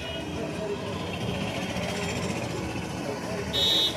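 Auto rickshaw engines putter past.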